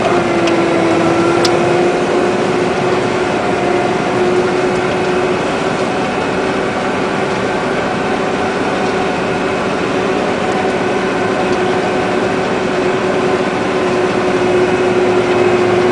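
A combine harvester's reel and header cut and rattle through dry wheat.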